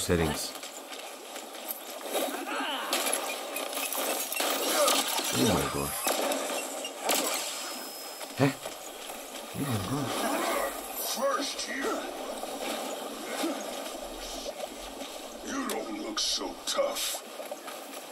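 Game sound effects and music play from a handheld console's speakers.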